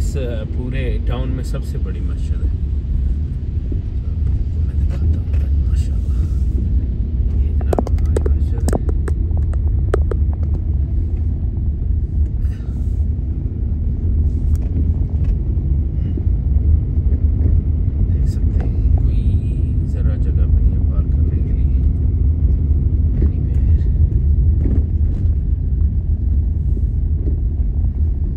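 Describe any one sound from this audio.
Rain patters on the windscreen.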